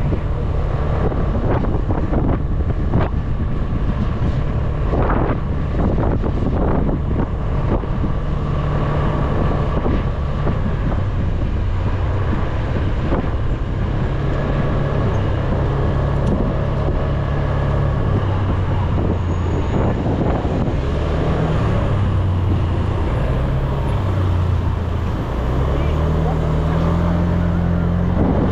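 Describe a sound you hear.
Wind rushes past while riding.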